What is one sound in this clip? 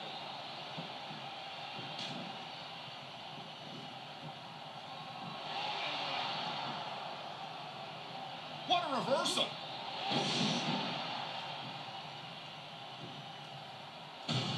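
A crowd cheers and roars steadily throughout.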